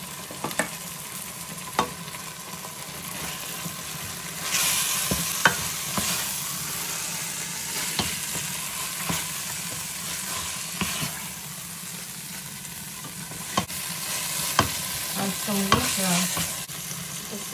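A plastic spatula stirs and knocks against a steel pot.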